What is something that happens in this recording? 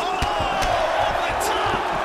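A punch lands with a dull thud.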